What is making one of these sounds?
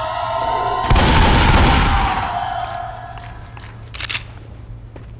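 A shotgun fires loudly several times.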